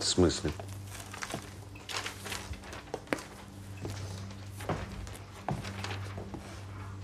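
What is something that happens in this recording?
Footsteps cross a wooden floor.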